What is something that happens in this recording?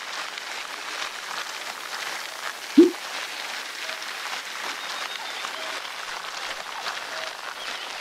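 A bike trainer whirs steadily.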